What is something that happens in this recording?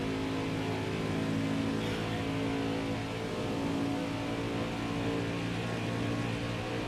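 Other race cars roar close by.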